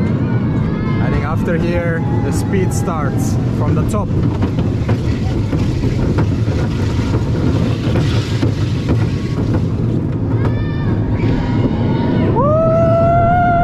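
Riders shriek and squeal on the ride.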